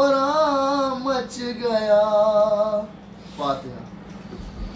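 A young man sings a mournful chant loudly and close by.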